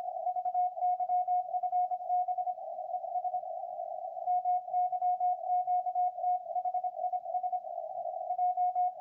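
A radio receiver beeps out rapid Morse code tones.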